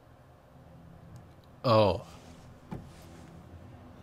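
A button clicks as a hand presses it.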